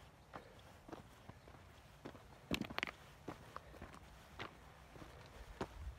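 Footsteps crunch on loose rocks and gravel.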